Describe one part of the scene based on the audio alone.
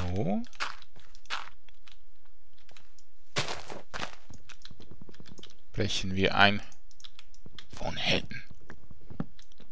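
Wooden blocks knock and crunch as they are broken.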